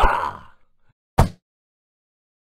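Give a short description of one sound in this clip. A punch lands with a sharp smack.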